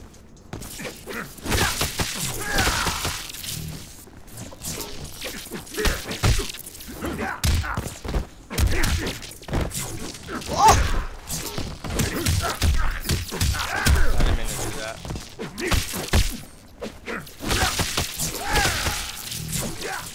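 Game fighters grunt and shout as they trade blows.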